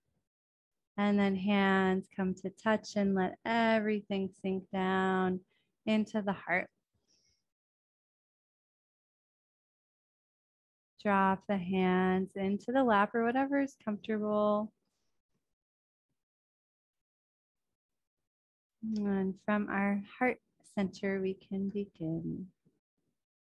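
A young woman speaks calmly and slowly into a close microphone, with long pauses.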